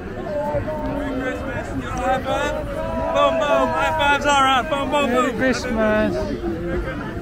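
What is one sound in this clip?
Men and women in the crowd cheer and call out loudly.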